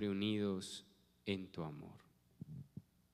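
A man sings a chant into a microphone.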